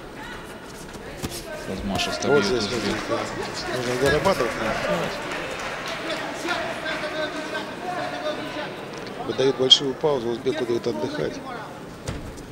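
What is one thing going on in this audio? A crowd cheers and shouts in a large hall, swelling and fading.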